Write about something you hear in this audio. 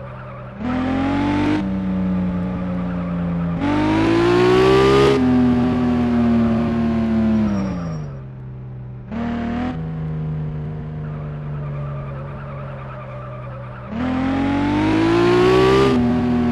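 A game's supercar engine revs and drops back to idle again and again.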